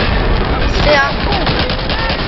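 A submachine gun fires a short burst.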